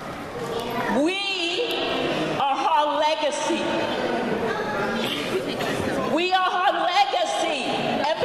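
A woman speaks loudly into a microphone through a loudspeaker.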